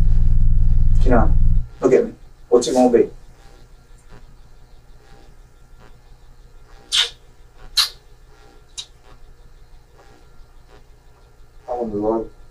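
A man speaks quietly in a small room, heard through a distant microphone.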